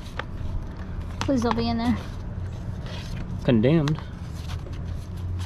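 Plastic game cases clack and rattle as they are shuffled in hands.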